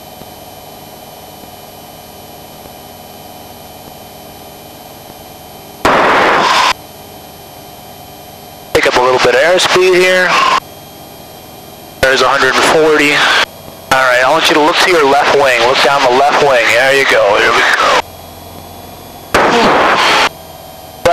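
A small plane's engine drones steadily.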